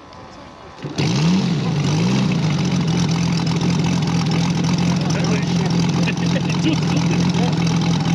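A model plane's engine starts up and buzzes steadily close by.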